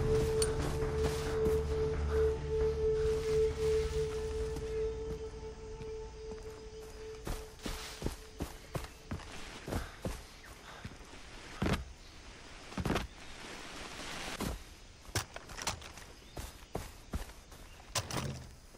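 Footsteps rustle through grass and leafy brush.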